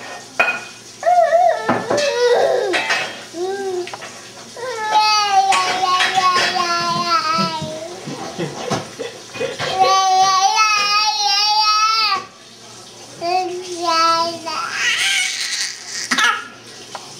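A baby squeals and giggles loudly, close by.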